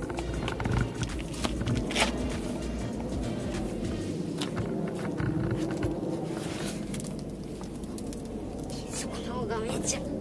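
Shoes scrape and slide on dry rock and dirt.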